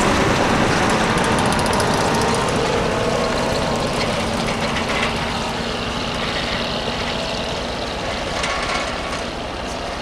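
Metal tracks clatter and squeak on packed snow.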